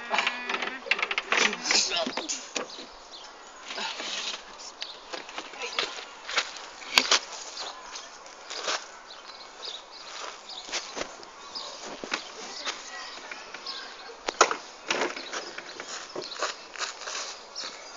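Knocks and thumps sound on a wooden play structure.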